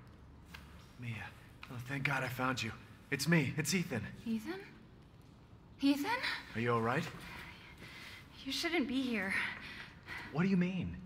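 A young woman speaks softly and breathlessly close by.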